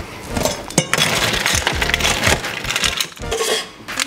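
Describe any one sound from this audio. Metal shaker tins clink together.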